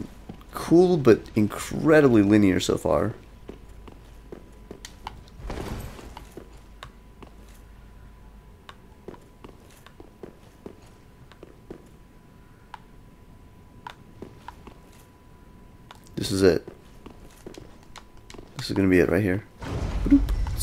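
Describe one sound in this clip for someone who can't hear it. Armoured footsteps clank on stone at a steady pace.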